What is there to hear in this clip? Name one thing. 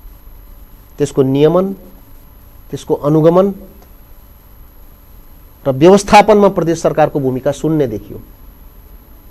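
A man speaks calmly into a close microphone, in short phrases.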